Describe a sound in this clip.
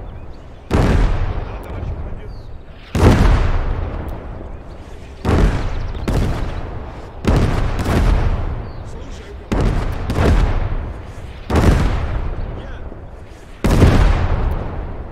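Heavy explosions boom and rumble at a steady, repeating pace.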